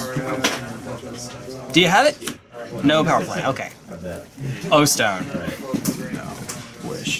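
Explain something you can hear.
Playing cards are tapped and slid onto a table.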